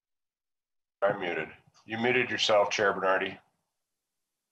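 An older man speaks calmly over an online call.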